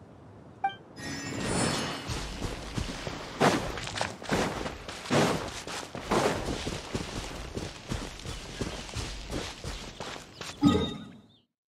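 Footsteps run steadily over grass and dirt.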